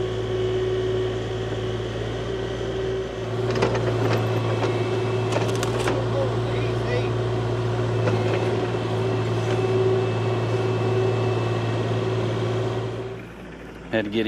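A digger's diesel engine runs with a steady drone.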